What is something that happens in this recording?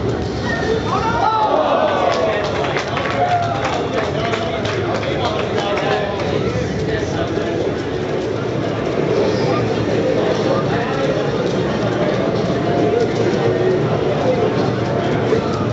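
A crowd of young men chatters and talks over one another.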